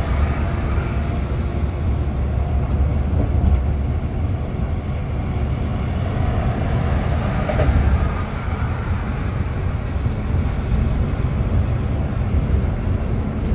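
A bus engine rumbles steadily while driving along a highway.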